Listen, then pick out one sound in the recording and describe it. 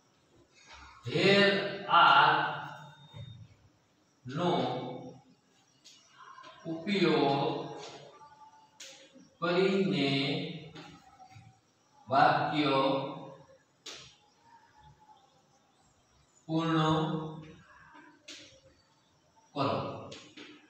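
A man speaks calmly and clearly, in short phrases, close by.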